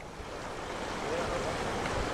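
Water splashes as a vehicle drives through a shallow stream.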